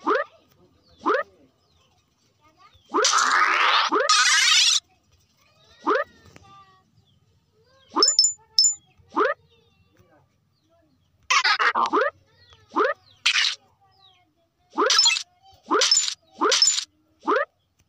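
A cartoon jump sound chirps upward again and again.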